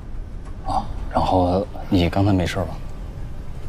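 A young man speaks gently and close by.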